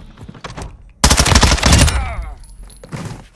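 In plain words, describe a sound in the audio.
Rapid gunshots fire at close range.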